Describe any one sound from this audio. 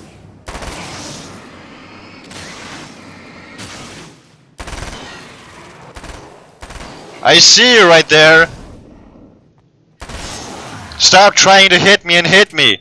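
Gunshots fire one after another, each booming and echoing away.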